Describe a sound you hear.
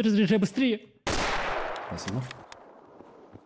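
A rifle fires a loud shot that echoes off walls.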